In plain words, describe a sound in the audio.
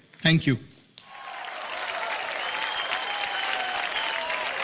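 A large audience claps and applauds.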